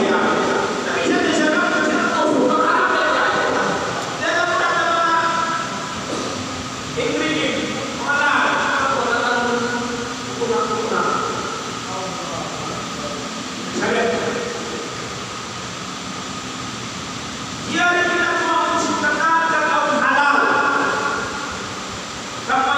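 An elderly man speaks steadily into a microphone, heard through a loudspeaker in an echoing hall.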